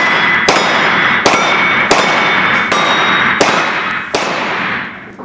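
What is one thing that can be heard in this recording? A pistol fires rapid shots that echo loudly in a large hall.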